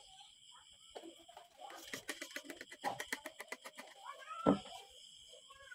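A paper towel rustles as it wipes across skin.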